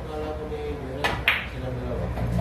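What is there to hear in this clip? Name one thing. A cue ball strikes the other balls with a sharp clack.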